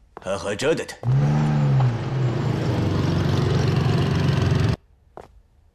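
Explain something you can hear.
A motorcycle engine roars as it rides past.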